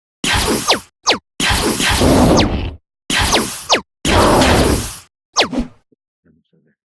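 Loud blasts of laser fire burst out in short bursts, each with a falling zap.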